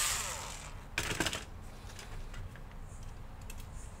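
A cordless screwdriver is set down with a knock.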